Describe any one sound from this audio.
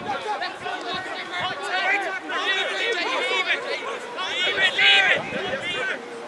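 Spectators on the sideline call out and cheer nearby.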